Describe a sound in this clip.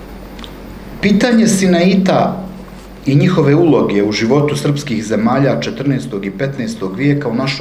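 A man speaks calmly into a microphone, reading out.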